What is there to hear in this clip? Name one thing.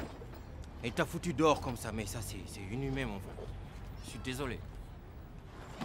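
A man answers in a low, apologetic voice nearby.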